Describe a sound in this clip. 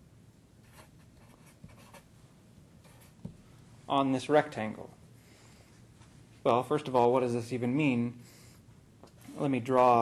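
A marker squeaks and scratches across paper.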